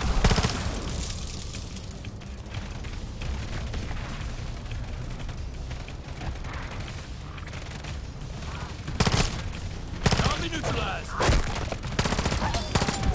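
Gunfire bursts out loud and close in sharp volleys.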